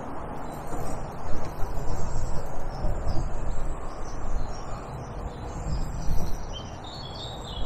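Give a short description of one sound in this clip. Wind buffets the microphone outdoors in gusts.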